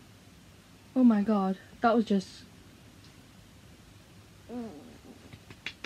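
A young girl speaks in a tearful, upset voice close to a microphone.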